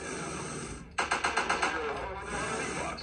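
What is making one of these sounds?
Game gunfire rattles in a quick burst.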